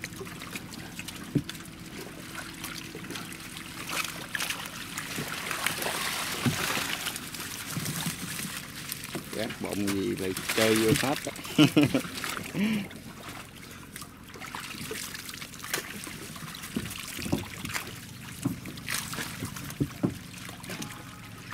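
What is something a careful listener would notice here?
Fish thrash and splash in shallow water.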